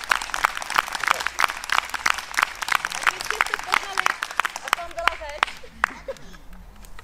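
An audience applauds outdoors.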